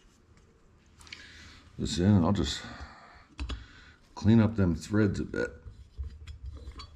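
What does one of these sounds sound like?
Metal parts click and clink as they are handled.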